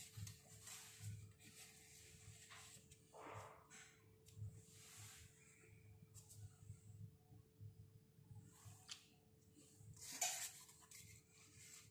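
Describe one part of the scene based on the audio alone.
Paper rustles and slides as stiff cards are handled.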